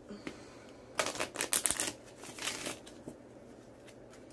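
A stiff card rustles softly as hands handle it.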